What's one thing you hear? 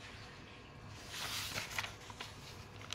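A paper page rustles as it is turned.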